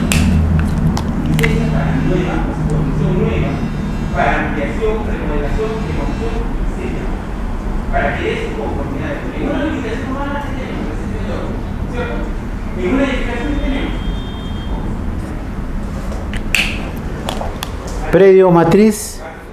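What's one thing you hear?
A man lectures calmly, heard through a microphone.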